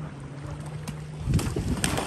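Feet splash through shallow water at a run.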